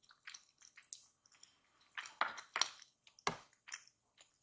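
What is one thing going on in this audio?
A fork clinks against a wooden plate.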